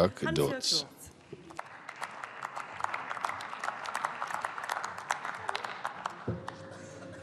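Scattered applause rings out in a large echoing hall.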